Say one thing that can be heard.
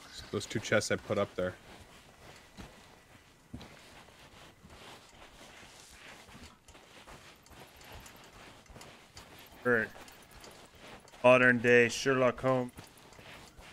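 Footsteps pad softly on sand.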